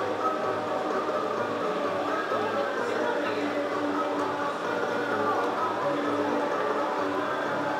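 A slot machine plays a bright, jingling tune.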